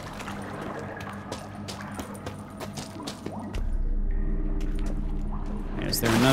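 Footsteps crunch on rocky ground in an echoing cave.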